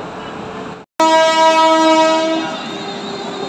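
A locomotive horn blares loudly and briefly.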